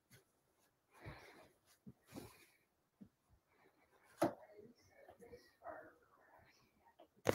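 Hands rustle and slide over quilted fabric.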